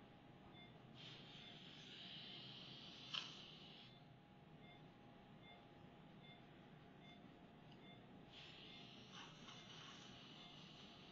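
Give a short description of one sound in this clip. A suction tube hisses and slurps.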